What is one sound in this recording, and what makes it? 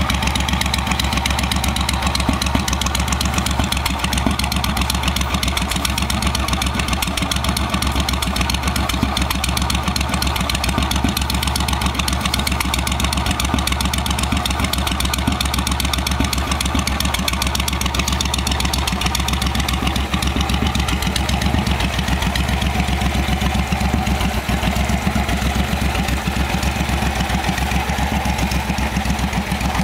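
A V-twin cruiser motorcycle idles.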